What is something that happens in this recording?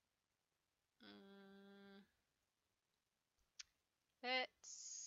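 A young woman speaks briefly into a headset microphone.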